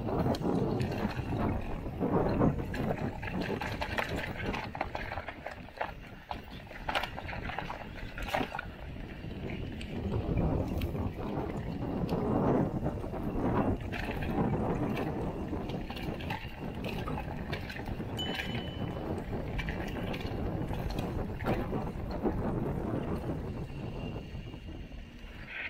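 Bicycle tyres crunch and rattle over a rough dirt trail.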